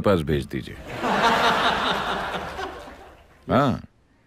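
A middle-aged man laughs heartily into a microphone.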